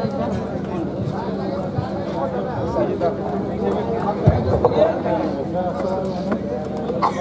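A crowd of men murmurs and chatters close by.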